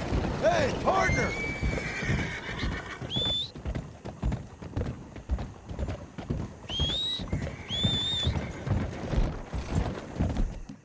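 Horse hooves clop steadily on wooden planks.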